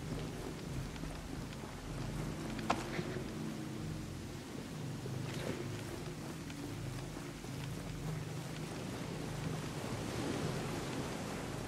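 Footsteps crunch softly on gravel and dirt.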